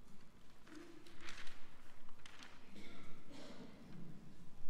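Paper rustles as a man unfolds a sheet.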